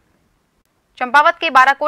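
A young woman speaks clearly into a microphone, reading out.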